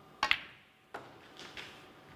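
Snooker balls knock together with a hard click.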